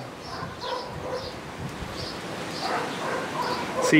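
Small scissors snip twigs.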